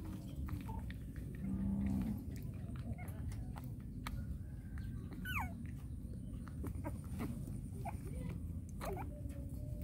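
A puppy sucks and smacks wetly at a feeding bottle, close by.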